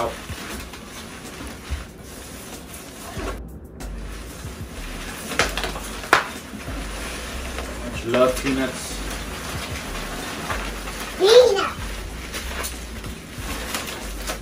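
Packing foam rustles and crunches as hands dig through a box.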